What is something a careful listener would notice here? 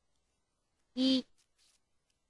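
A notification chime sounds once, short and bright.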